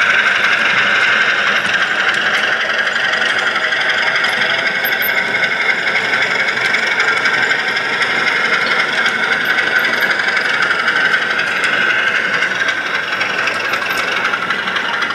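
A model train hums and clatters steadily along its track.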